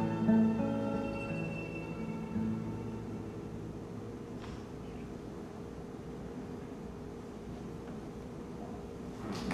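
A cello plays a long, sustained bowed note in a hall.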